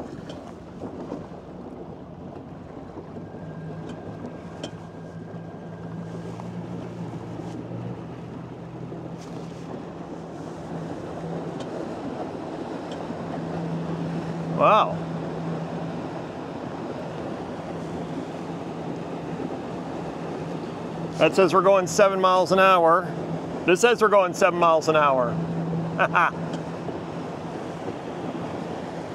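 A small boat motor hums steadily.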